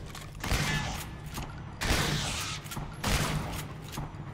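A shotgun fires in loud, sharp blasts.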